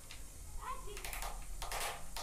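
A hammer taps a chisel into wood.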